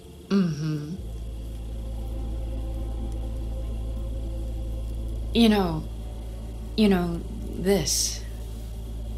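A young woman speaks in short, hesitant phrases close by.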